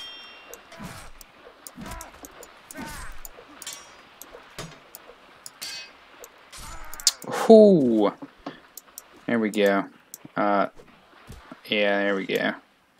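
Swords swing and clash in a fight.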